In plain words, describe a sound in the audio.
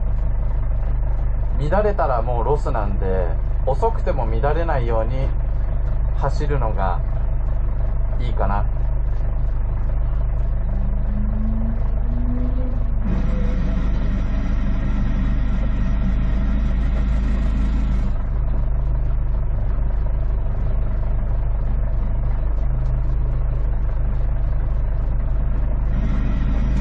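The flat-four boxer engine of a Subaru WRX STI idles, heard from inside the car.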